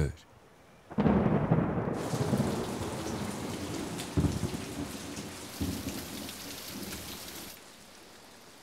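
Rain patters onto a puddle.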